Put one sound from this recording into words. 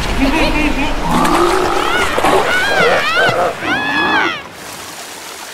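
Cartoon creatures laugh loudly.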